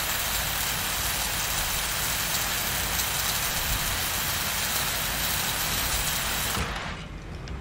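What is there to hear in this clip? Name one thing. A cutting torch hisses and crackles steadily against metal.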